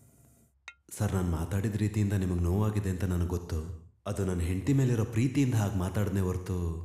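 A man speaks calmly and close.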